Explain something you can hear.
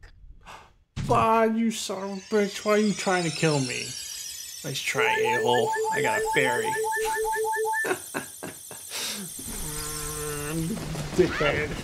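Video game music and sound effects play.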